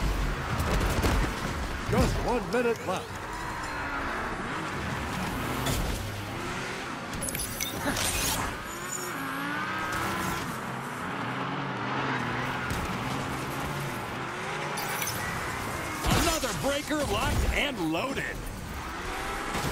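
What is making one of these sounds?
Car engines roar and rev nearby.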